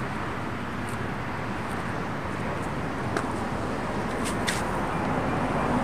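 Bare feet pad softly on a paved floor.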